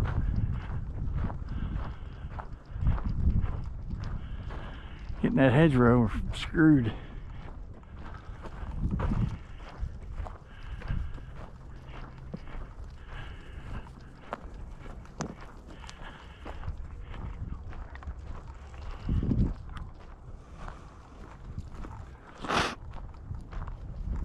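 Wind blows and rumbles outdoors.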